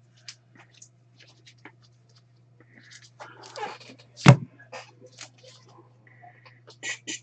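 A stack of trading cards is set down on a table with a soft tap.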